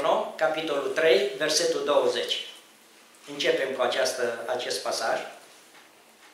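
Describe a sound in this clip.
A middle-aged man speaks into a microphone, through a loudspeaker in an echoing room.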